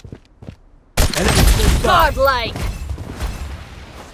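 A sniper rifle fires a loud shot that echoes away.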